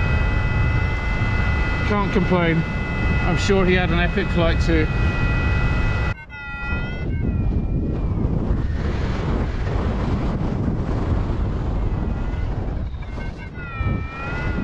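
A flight instrument beeps with high electronic tones that rise and fall.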